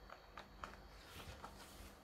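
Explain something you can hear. Paper pages rustle as a page is turned.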